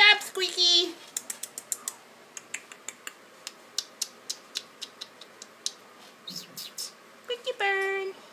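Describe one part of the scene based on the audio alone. A parrot's beak clicks and crunches as it chews.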